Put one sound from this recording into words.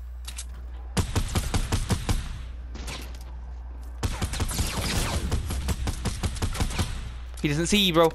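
A pickaxe chops rapidly at wood and earth.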